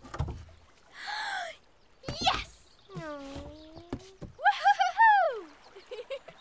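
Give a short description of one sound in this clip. Young children call out excitedly.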